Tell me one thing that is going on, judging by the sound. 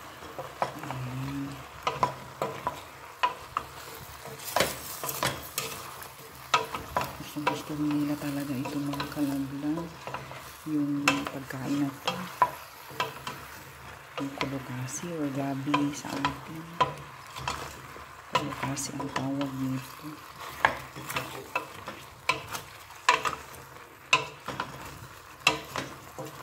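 A wooden spoon stirs chunks of food in a metal pot, knocking against its sides.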